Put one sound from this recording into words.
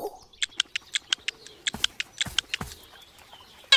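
A bird pecks the ground with quick, light tapping knocks.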